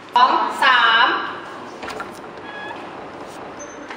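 A door latch clicks.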